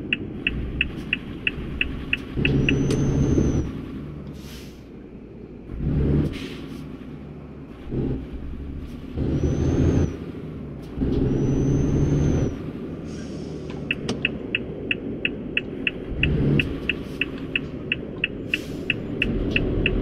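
A truck engine rumbles steadily, swelling louder now and then.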